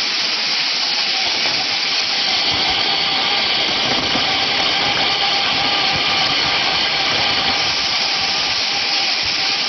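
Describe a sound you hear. A conveyor machine hums and rattles steadily.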